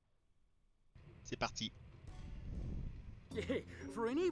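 Game music and sound effects play as a match begins.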